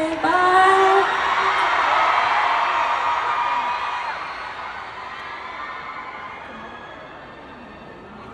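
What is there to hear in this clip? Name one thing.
A crowd cheers and screams.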